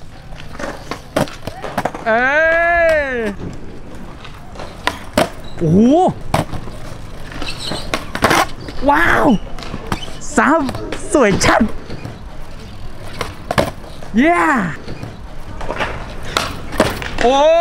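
A skateboard lands with a hard clatter.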